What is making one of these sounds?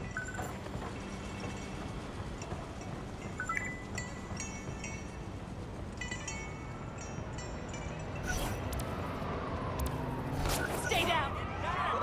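Footsteps run quickly up stone steps and along pavement.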